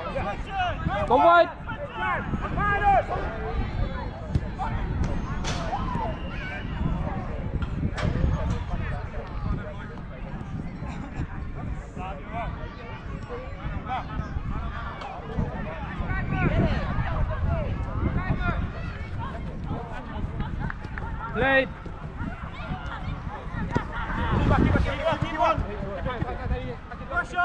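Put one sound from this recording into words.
Men shout and call to each other across an open outdoor pitch.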